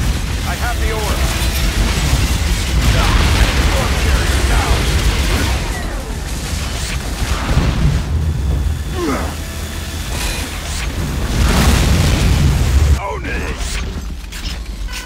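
Sci-fi guns fire in rapid bursts.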